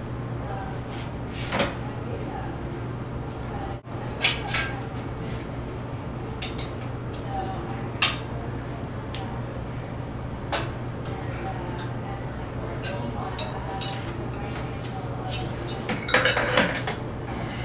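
Metal parts clink and knock sharply now and then.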